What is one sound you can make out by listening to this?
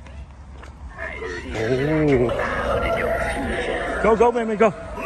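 A Halloween decoration speaks in a deep, spooky voice through a loudspeaker.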